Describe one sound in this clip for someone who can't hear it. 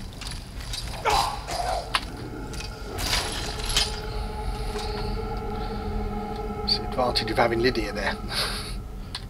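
An undead creature groans and growls.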